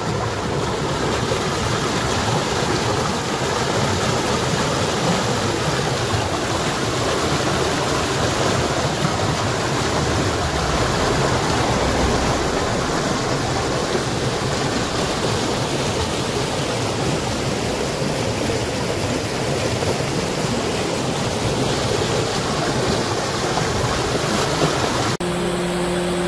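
Muddy floodwater rushes and churns loudly.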